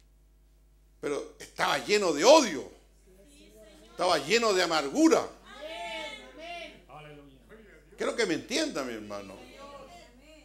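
An elderly man preaches forcefully into a microphone, his voice rising and falling.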